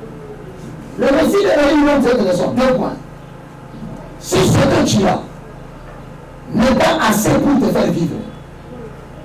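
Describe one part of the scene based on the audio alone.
A man speaks loudly through a microphone, in short bursts with pauses.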